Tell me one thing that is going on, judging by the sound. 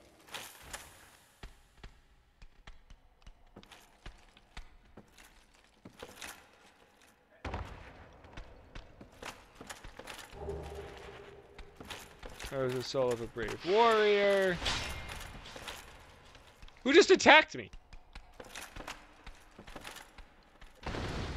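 Armoured footsteps clank on a wooden floor.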